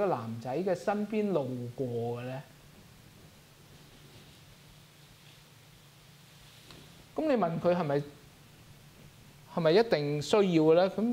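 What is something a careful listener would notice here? A middle-aged man preaches calmly into a microphone, with pauses between phrases.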